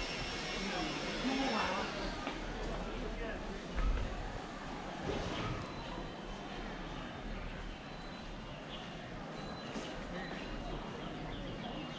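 Footsteps tap on stone paving.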